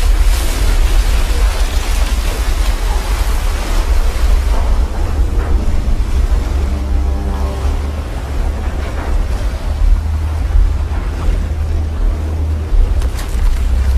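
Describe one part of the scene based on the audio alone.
Water surges and crashes with a deep, heavy roar.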